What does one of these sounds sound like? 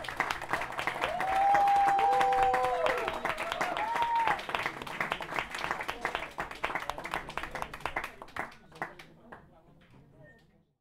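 A crowd claps steadily, and the clapping slowly fades.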